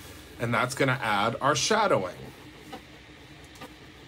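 A sheet of card slides across a hard surface.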